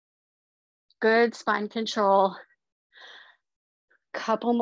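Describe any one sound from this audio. A woman speaks clearly and with animation, heard through a microphone on an online call.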